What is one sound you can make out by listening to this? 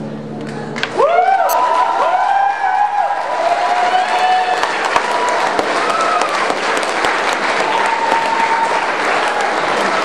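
Members of an audience whistle shrilly.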